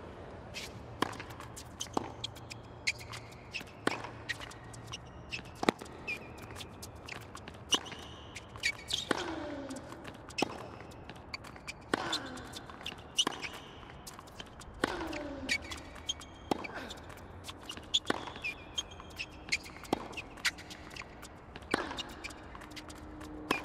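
A tennis ball is struck sharply with a racket, back and forth.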